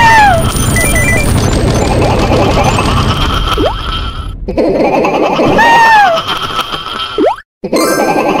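Short game sound effects chime and whoosh as a character jumps.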